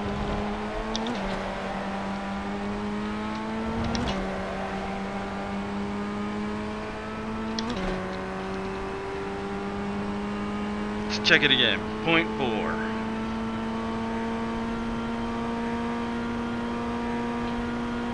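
A racing car engine drones steadily and climbs in pitch, dropping sharply with each gear change.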